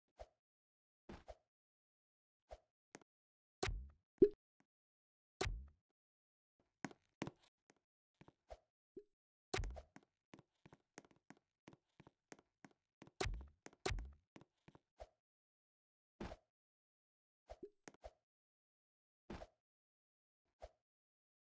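Short game sound effects click and pop now and then.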